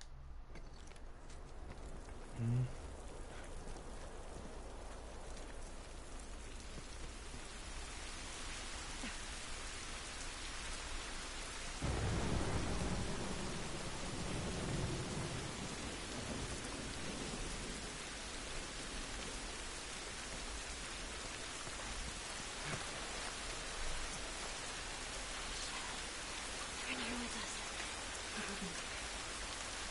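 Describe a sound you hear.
Heavy rain pours down steadily, growing louder.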